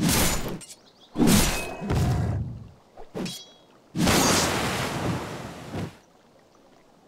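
Blades strike and creatures grunt in a fight.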